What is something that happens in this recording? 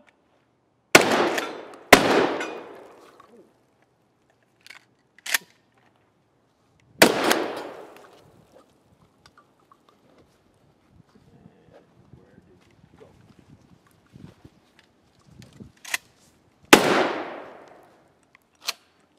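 A shotgun fires loud shots that echo outdoors.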